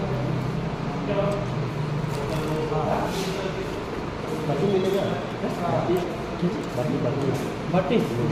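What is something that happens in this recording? A young woman talks calmly up close.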